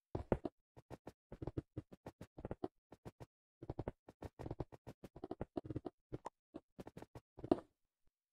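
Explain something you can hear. Blocks are set down one after another with soft, quick thuds.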